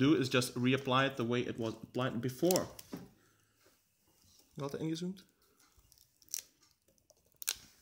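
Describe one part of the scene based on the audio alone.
Adhesive tape peels away with a soft crackle.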